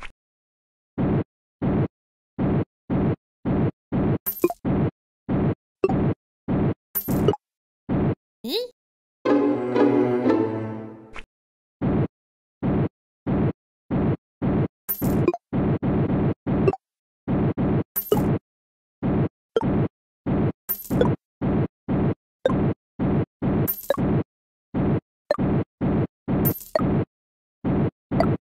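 Short game flap sounds repeat quickly and evenly.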